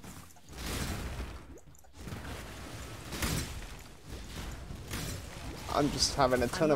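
Magic spells crackle and burst in quick bursts.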